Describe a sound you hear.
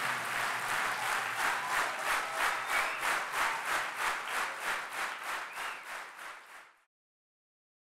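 A large crowd claps in rhythm, fading out.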